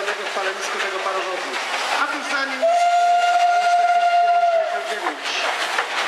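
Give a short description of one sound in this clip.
A steam locomotive chugs past, puffing loudly.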